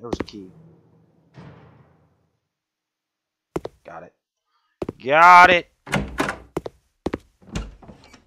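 A locked door rattles.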